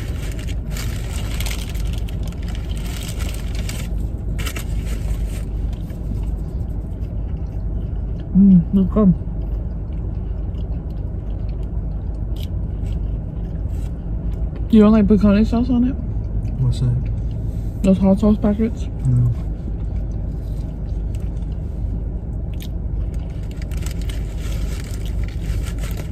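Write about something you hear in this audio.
Paper wrapping rustles.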